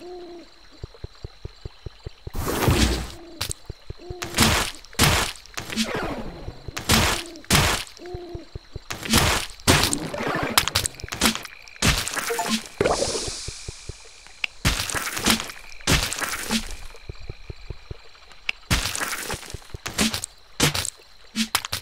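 Game sound effects of hits and blasts burst out again and again.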